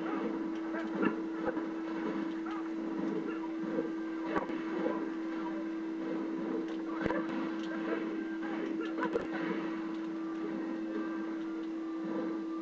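Punches and kicks land with sharp thuds from a video game.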